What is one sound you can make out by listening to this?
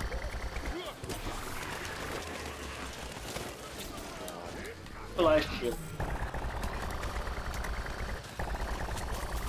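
A weapon fires rapid bursts of shots.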